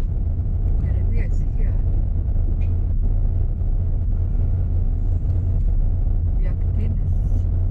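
A car engine rumbles steadily from inside the car as it drives slowly.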